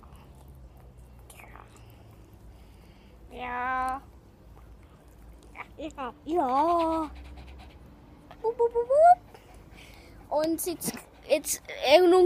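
A dog pants close by.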